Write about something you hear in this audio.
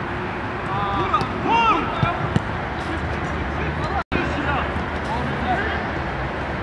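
Men shout to each other outdoors during a game.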